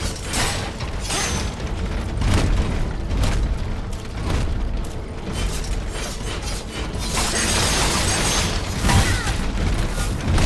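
Electric crackling bursts sizzle.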